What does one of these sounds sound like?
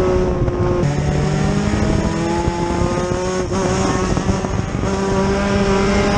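Other race car engines roar nearby.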